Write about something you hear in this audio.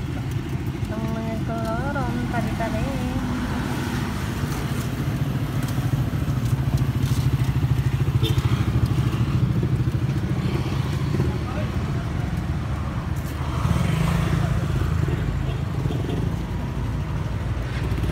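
Motorbikes and cars pass by on the road.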